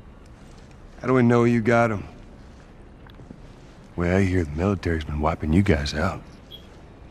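A man speaks in a low, relaxed voice, close by.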